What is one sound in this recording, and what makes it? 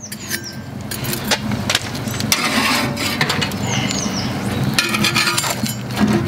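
Metal tongs clank and scrape against a grill grate.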